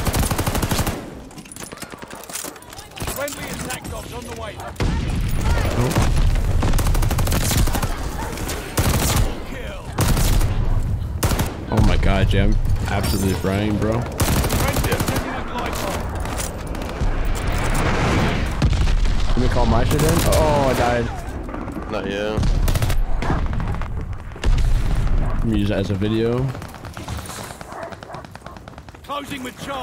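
Rapid gunfire bursts in loud volleys.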